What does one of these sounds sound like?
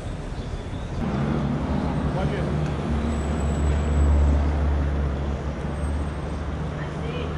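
Traffic drives past on a nearby street.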